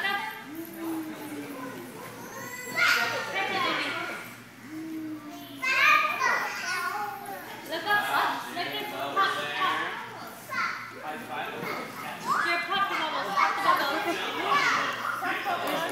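Toddlers squeal and shout excitedly in a room.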